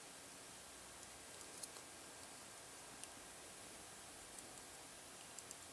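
Small plastic parts click softly as they are handled.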